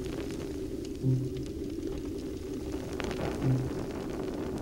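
A soft menu chime sounds twice.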